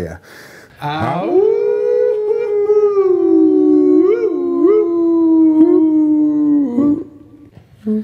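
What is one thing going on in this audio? Two men howl together in a long, wavering held note.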